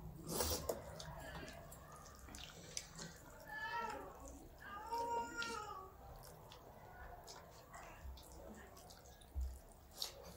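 Two young women chew and smack their lips loudly.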